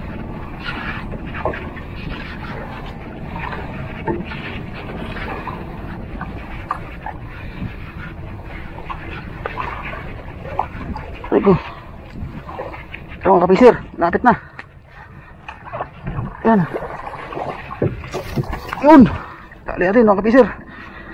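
Water laps and sloshes against a small boat.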